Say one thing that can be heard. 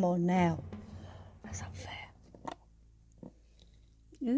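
A plastic bottle cap is twisted and clicks.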